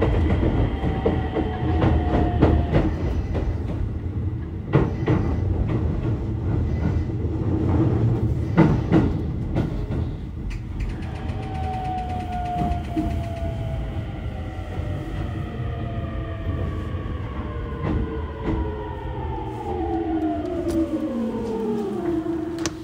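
A subway train rumbles along the tracks.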